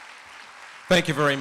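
An older man speaks into a handheld microphone.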